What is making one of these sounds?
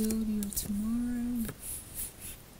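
A young woman sings a short, steady note close by.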